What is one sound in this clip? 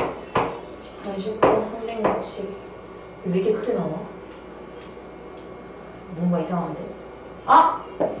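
A young woman speaks calmly in short phrases, close by.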